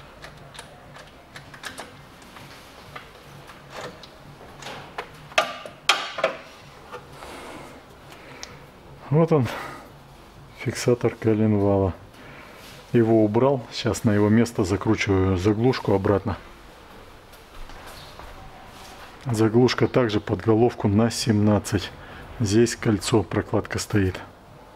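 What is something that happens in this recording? Metal parts clink together in a hand.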